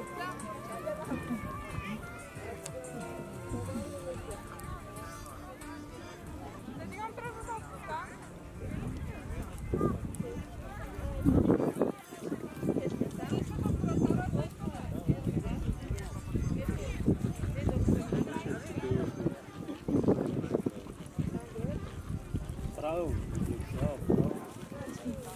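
Horses trot and canter over grass with soft hoof thuds.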